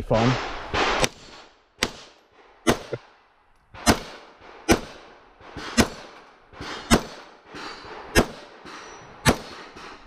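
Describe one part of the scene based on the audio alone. A pistol fires shot after shot outdoors, each crack echoing off nearby ground.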